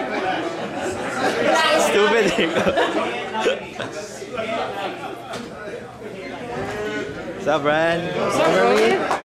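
Several men talk loudly and with animation close by over a crowd's chatter.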